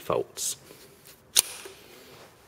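A plastic drive tray latch clicks sharply as it is pulled open.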